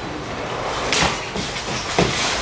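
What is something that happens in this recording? Two sumo wrestlers collide with a slap of bare skin.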